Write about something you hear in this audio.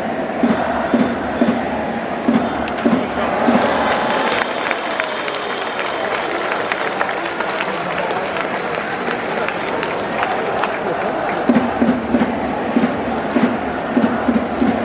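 Drums beat in a steady rhythm among a stadium crowd.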